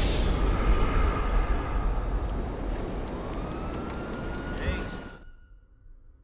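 A deep, muffled rumble swells and then fades away into near silence.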